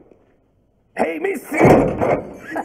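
A man speaks loudly and laughs.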